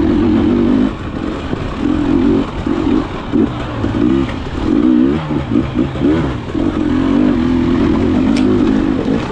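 Tyres crunch over dirt, roots and leaves.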